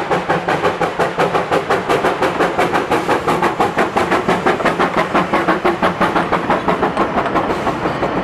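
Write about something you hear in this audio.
Train wheels clatter and squeal on the rails as the cars pass.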